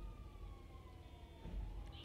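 A small engine revs and hums.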